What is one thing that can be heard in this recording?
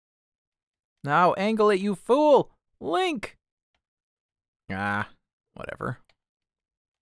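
A man talks with animation close to a microphone, in a few short bursts.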